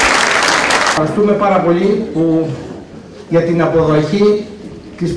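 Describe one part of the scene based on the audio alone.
A middle-aged man speaks calmly into a microphone over loudspeakers.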